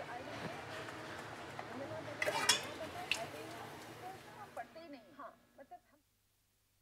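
Dishes clink and scrape.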